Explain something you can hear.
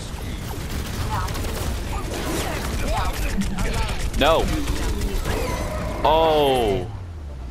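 Loud explosions boom and crackle.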